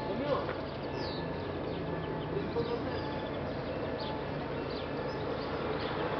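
A train rolls in along the rails and slows to a stop.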